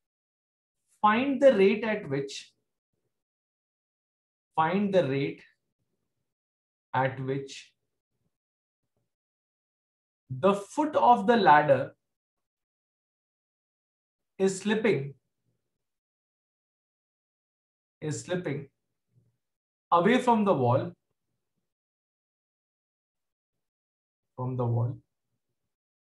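A man speaks calmly and slowly in short phrases, close to a microphone.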